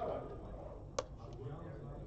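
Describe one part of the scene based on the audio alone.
A button on a game clock is pressed with a click.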